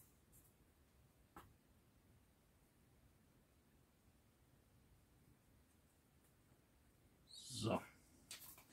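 A small paintbrush strokes softly across a hard tile.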